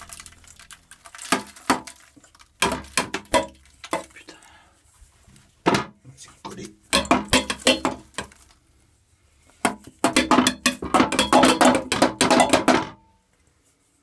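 A metal bowl scrapes and clatters against a toilet bowl.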